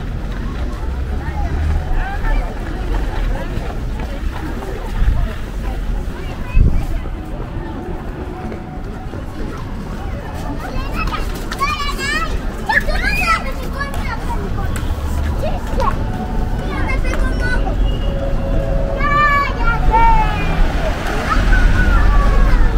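Footsteps shuffle on stone paving.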